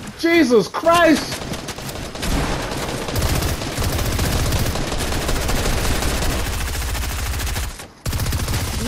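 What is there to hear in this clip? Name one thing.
Wooden building pieces clatter rapidly into place.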